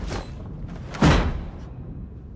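A person drops down and lands with a heavy thud.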